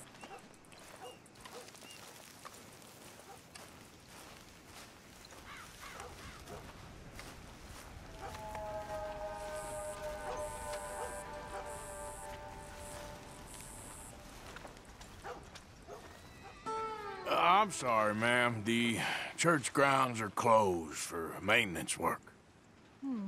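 Footsteps thud on grass and dirt.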